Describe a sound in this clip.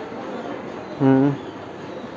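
A cow moos close by.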